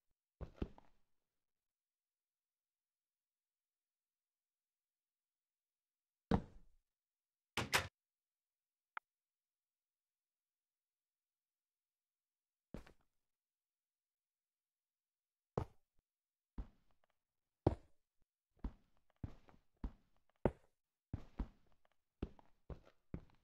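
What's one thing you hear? Blocks are placed with short soft thuds, one after another.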